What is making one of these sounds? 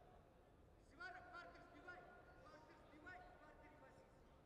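A man calls out a short announcement.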